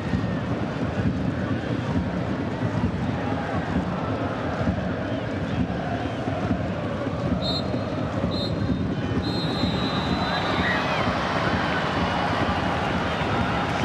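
A large stadium crowd roars and cheers loudly throughout.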